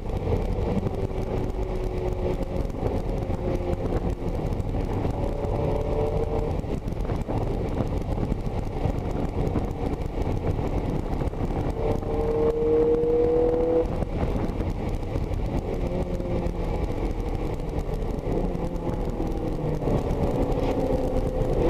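A sports car engine roars loudly from inside the cabin, its pitch rising as it revs through the gears.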